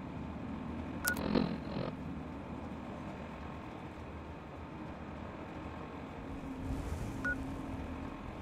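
An electronic device beeps as its menus change.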